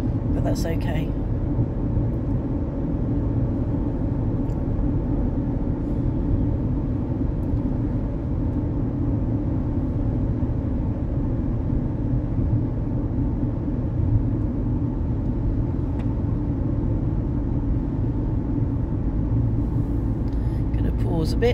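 A car drives steadily along a highway, its engine and tyres rumbling low inside the cabin.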